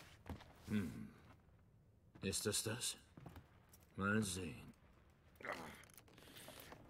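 A man with a low, gravelly voice speaks calmly in short, muttered phrases.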